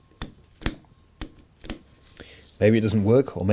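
A plastic connector clicks as it is pulled apart.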